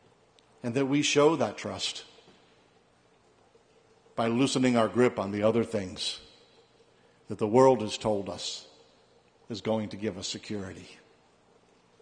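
A middle-aged man speaks calmly through a microphone, in short phrases with pauses.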